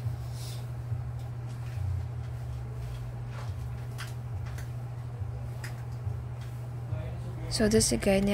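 Cloth rustles softly.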